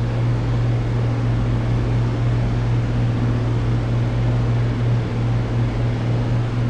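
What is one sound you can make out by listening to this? An aircraft engine drones steadily with a low, loud hum.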